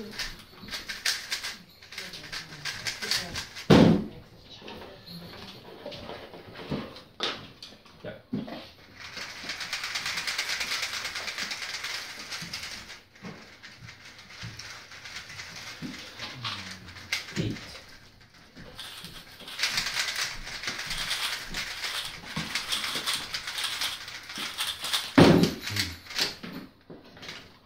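Plastic puzzle cubes click and rattle quickly as they are twisted.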